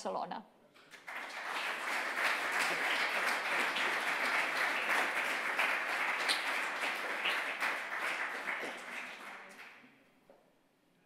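An audience applauds steadily, then the applause fades.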